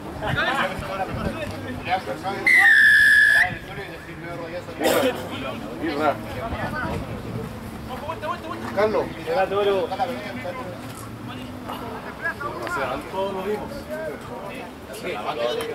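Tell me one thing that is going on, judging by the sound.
Young men shout and call out across an outdoor field.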